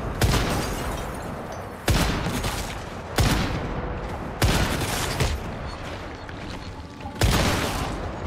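A heavy rifle fires single loud shots that echo and fade.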